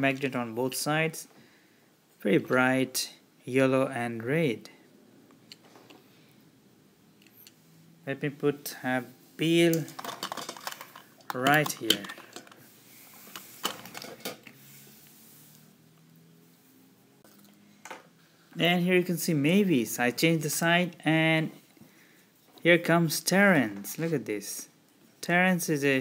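Small metal toy trains clink and click as they are handled.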